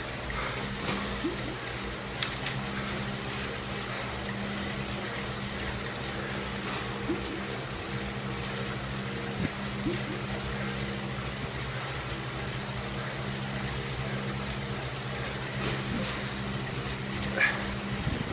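A steady hum of an indoor bike trainer drones close by.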